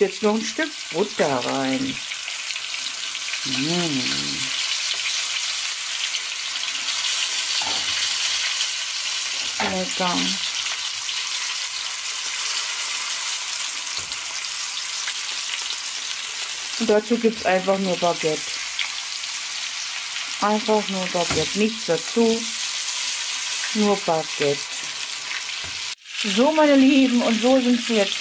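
Fish sizzles steadily as it fries in hot fat.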